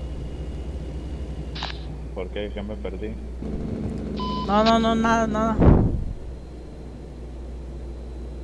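A truck engine rumbles steadily at cruising speed.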